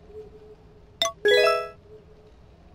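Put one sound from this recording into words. A short electronic chime rings as a menu opens.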